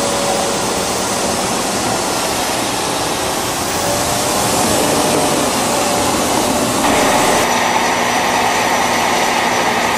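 A tank engine roars loudly.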